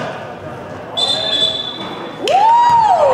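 A referee's whistle blows a short, shrill blast.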